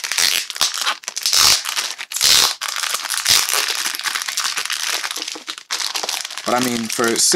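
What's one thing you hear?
A plastic sleeve crinkles and rustles under hands.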